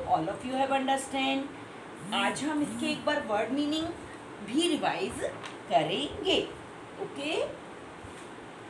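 A middle-aged woman speaks calmly and clearly, close by.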